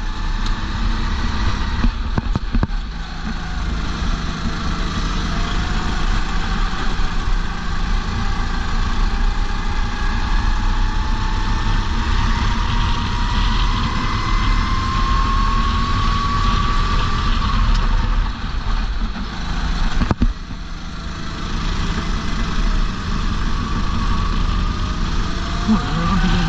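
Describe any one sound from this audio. A racing kart engine revs hard, rising in pitch as it accelerates down a straight.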